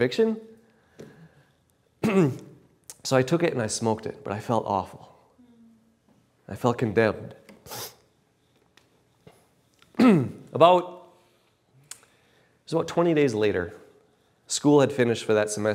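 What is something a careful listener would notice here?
A man speaks with animation, pausing between phrases.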